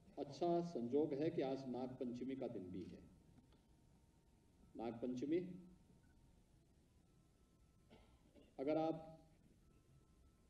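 A middle-aged man speaks slowly and firmly into a microphone, with pauses.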